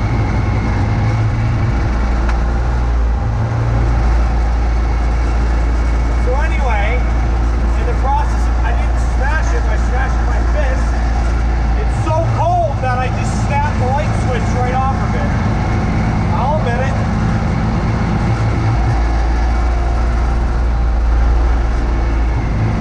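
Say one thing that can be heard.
Snow sprays and hisses from a snowblower chute.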